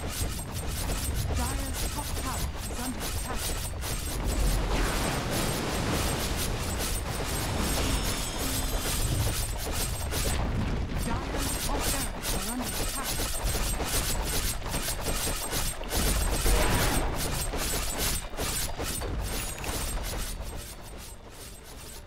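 Game spell effects crackle and boom in a busy fight.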